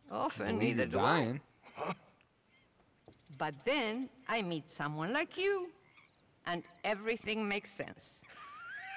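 An elderly woman speaks warmly and calmly.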